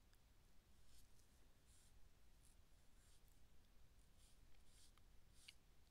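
A paintbrush brushes softly across paper in short strokes.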